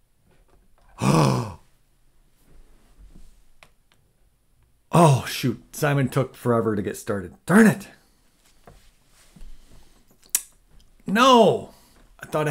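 A man talks in short bursts into a close microphone.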